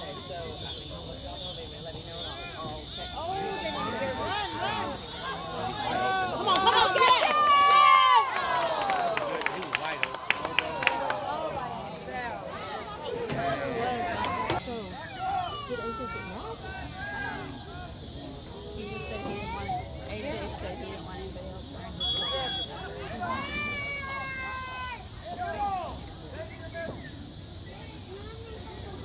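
Boys on a sideline talk and call out outdoors.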